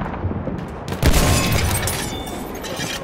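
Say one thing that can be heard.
A large explosion booms close by.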